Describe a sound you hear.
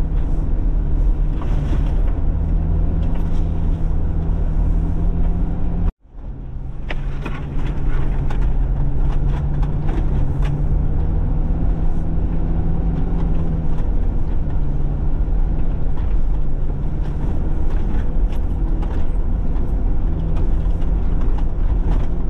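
Tyres crunch over packed snow.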